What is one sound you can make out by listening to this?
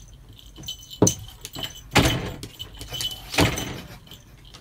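A cat leaps and thumps against a wooden door.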